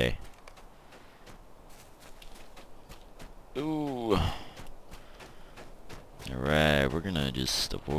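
Footsteps thud quickly on a dirt path.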